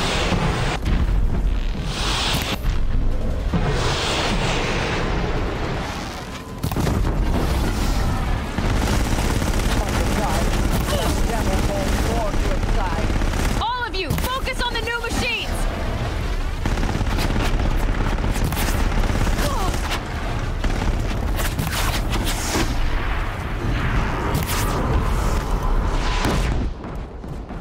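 Explosions and blasts boom loudly.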